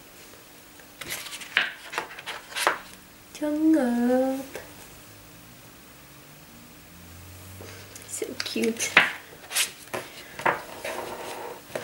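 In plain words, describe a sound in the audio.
Paper pages rustle and flap as they are turned.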